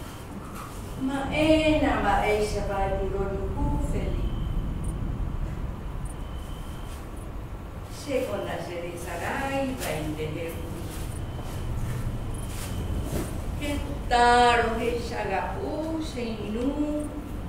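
An elderly woman speaks slowly and tenderly, close by.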